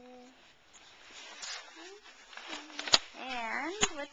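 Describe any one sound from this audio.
Paper rustles as it is handled close by.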